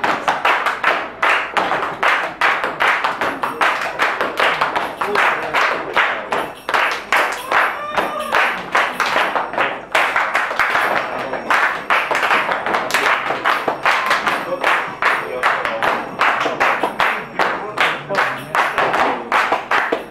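A crowd claps along in a fast, steady rhythm.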